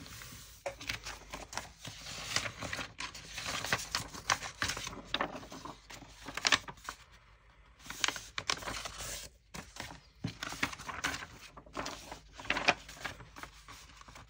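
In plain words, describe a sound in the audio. Sheets of card rustle and slide against each other as they are handled.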